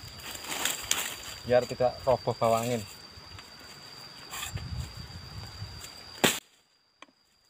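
A plastic bag rustles in a man's hand.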